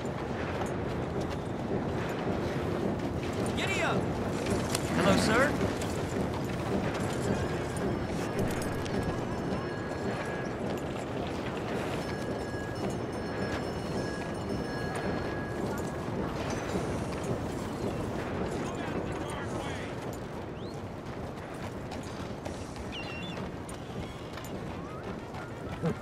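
A horse's hooves clop steadily on a dirt street.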